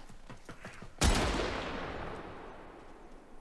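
A loud blast booms and slowly dies away.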